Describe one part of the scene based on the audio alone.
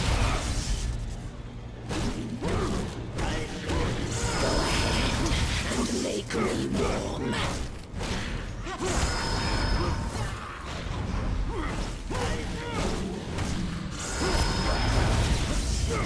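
Sword slashes and magic blasts clash in a game fight.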